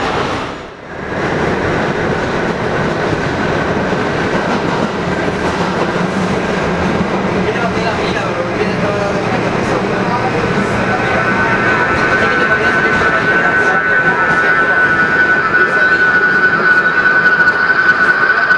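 A subway train rumbles and rattles along its tracks.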